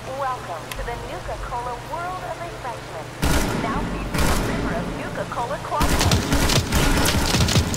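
Footsteps splash through shallow water.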